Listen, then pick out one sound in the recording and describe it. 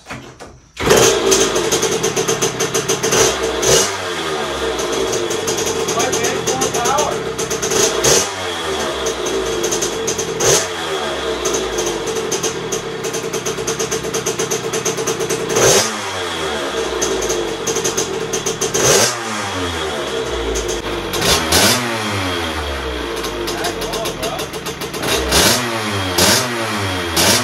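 A small motorcycle engine starts up and runs with a loud, rattling idle.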